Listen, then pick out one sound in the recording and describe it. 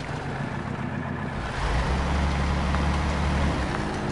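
Branches scrape and snap against a truck.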